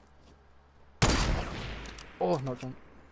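A sniper rifle fires a single loud shot that echoes away.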